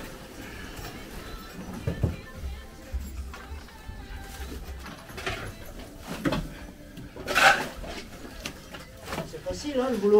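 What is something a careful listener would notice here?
A shovel scrapes and thuds against a wheelbarrow.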